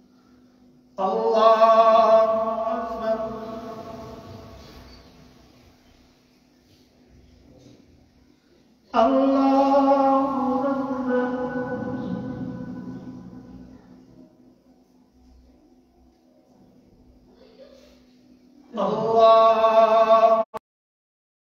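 A man chants short calls loudly through a microphone, echoing in a large hall.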